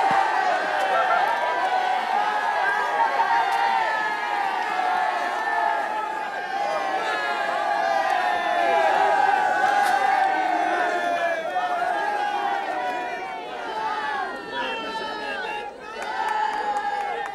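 A crowd of men and women cheers and chatters loudly and close by.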